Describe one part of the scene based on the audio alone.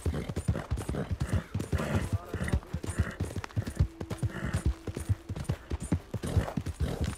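A horse gallops with rhythmic hoofbeats on a dirt trail.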